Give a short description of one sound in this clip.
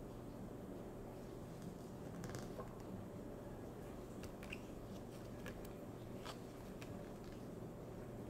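Paper envelopes rustle and crinkle as they are handled.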